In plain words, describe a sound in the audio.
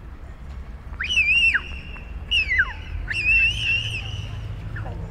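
A young child squeals with excitement nearby.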